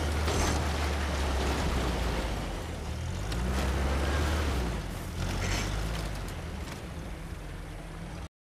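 A jeep engine rumbles as it drives over rough ground.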